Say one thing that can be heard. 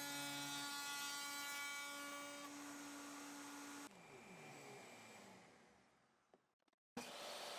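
A power router motor hums steadily, then spins down.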